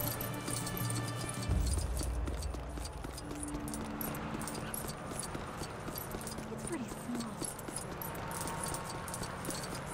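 Small coins jingle and chime as they are picked up, many times in quick succession.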